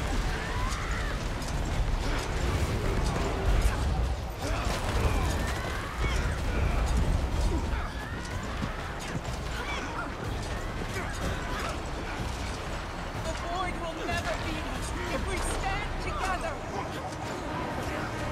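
Magic spells crackle and boom in a busy battle.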